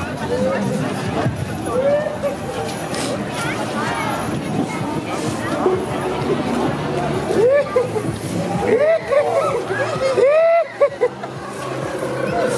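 A lively outdoor crowd chatters nearby.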